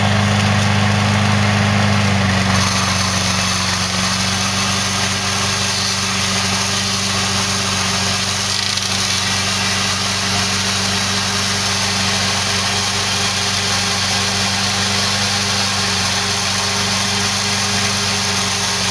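A small engine runs steadily close by.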